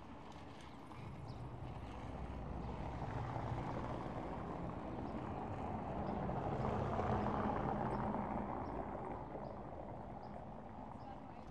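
A car drives past on cobblestones, swelling and fading.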